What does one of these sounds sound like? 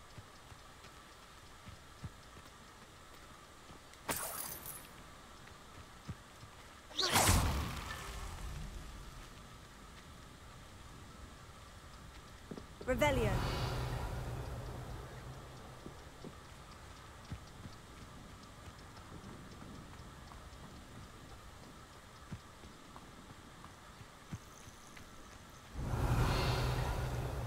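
Footsteps tread softly on grass and dirt.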